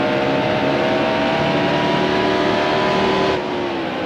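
Other race cars' engines roar close by as they are passed.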